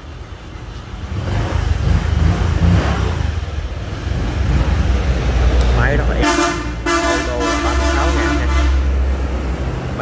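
A scooter engine idles close by with a low, steady rumble.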